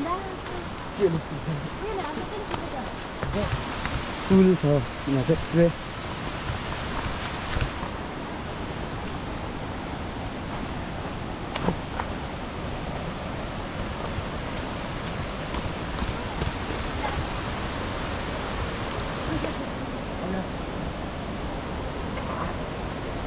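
A river rushes steadily nearby.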